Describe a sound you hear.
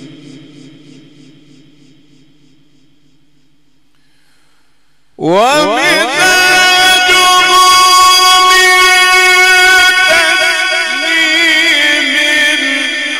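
An elderly man chants in a long, drawn-out voice through a microphone and loudspeakers.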